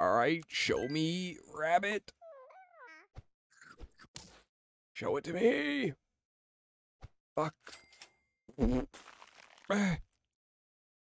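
Short cartoonish game sound effects chime and pop.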